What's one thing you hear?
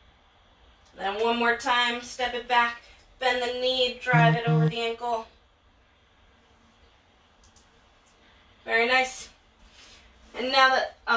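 A woman speaks with animation nearby, in short bursts.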